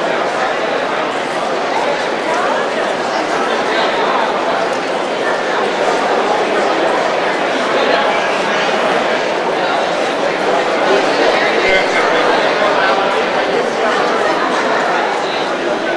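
A large crowd chatters all at once in a big echoing hall.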